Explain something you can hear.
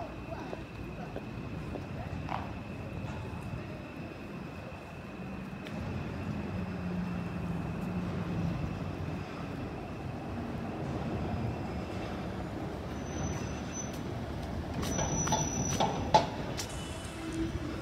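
City traffic rumbles.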